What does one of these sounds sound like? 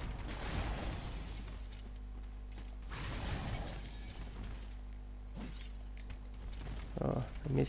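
Ice crystals shatter and crackle in bursts.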